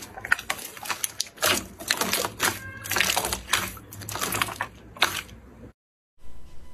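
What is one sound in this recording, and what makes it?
Wet slime squelches and crackles as hands squeeze and stretch it.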